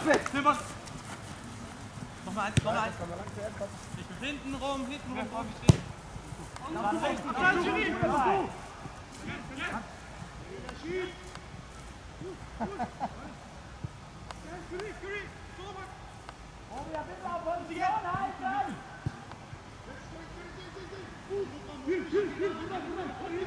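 Men shout and call to each other outdoors in the open.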